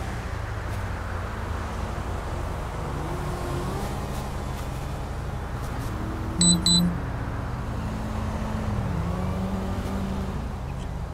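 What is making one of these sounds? A car engine idles steadily close by.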